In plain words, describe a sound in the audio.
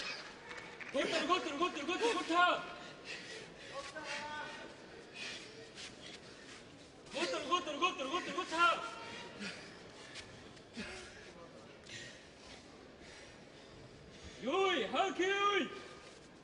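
A sumo referee calls out in a drawn-out chant in a large hall.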